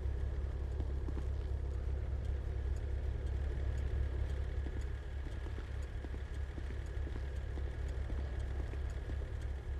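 Footsteps tread on hard paving.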